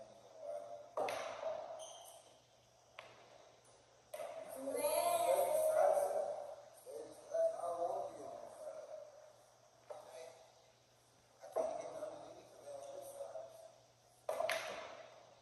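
Pool balls clack together sharply in an echoing room.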